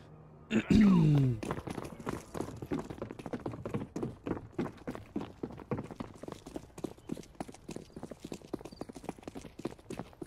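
Footsteps patter quickly as a game character runs.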